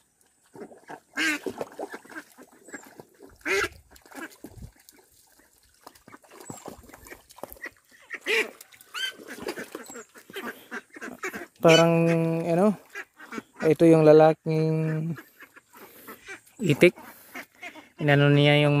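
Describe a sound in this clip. Ducks dabble and splash in shallow water.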